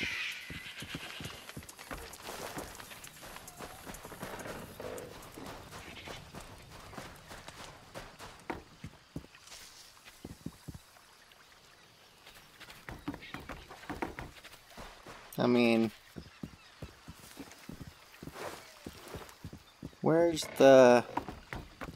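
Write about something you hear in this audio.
Footsteps crunch on dirt and gravel as a man runs.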